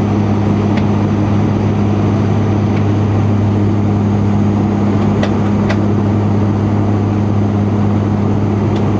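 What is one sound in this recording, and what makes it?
An aircraft engine drones steadily in the cabin.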